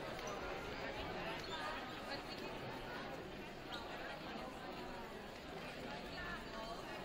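A crowd of young women chatter and call out across a large echoing gym.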